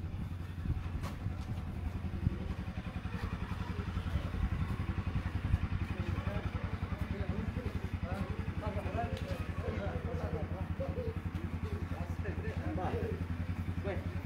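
Footsteps shuffle on pavement as a group walks.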